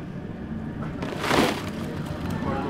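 A plastic bin scrapes and rattles.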